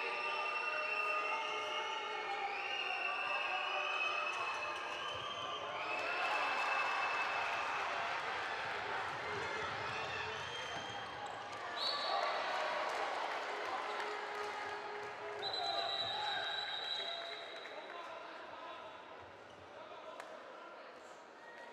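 A large crowd cheers and chants in a big echoing hall.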